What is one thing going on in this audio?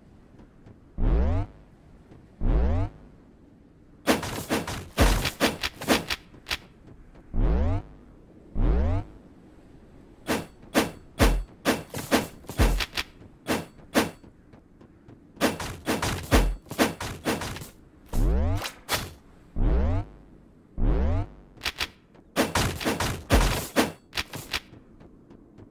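Game sound effects whoosh and thump as a character attacks.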